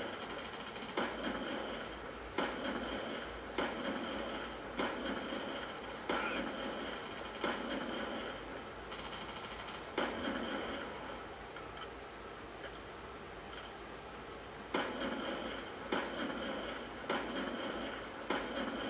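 Gunshots from a video game blast through speakers in sharp bursts.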